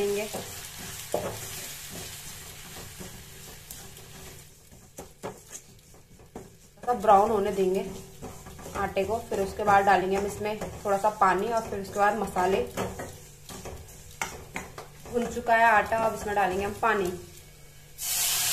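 A metal spatula scrapes and clatters against a wok while food is stirred.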